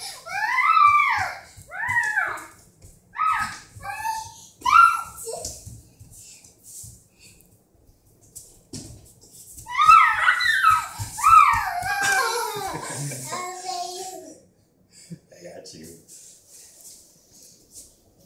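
Bare feet patter and thump on a wooden floor.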